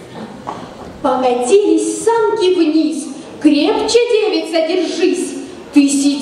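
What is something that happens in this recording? A girl sings loudly through a microphone.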